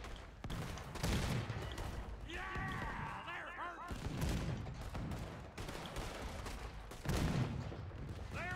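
A cannon fires with deep, heavy booms.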